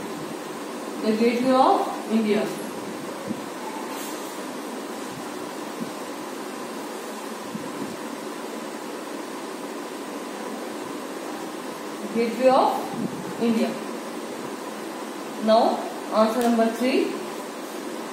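A young woman speaks calmly and clearly nearby.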